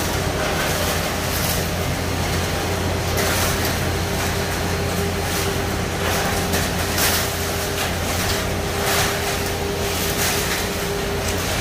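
Wet concrete slops and scrapes under rakes.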